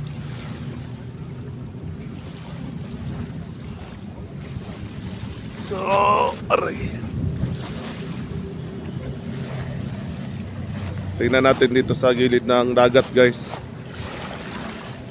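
Small waves lap softly at the shore.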